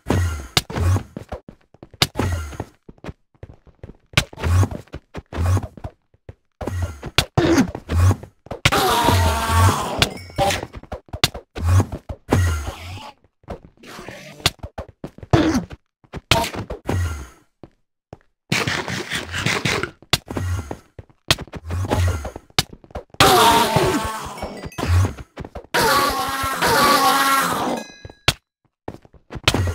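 Blocks are struck and broken with short, dull thuds.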